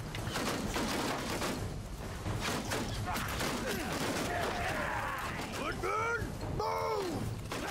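Swords and shields clash and clang in a battle nearby.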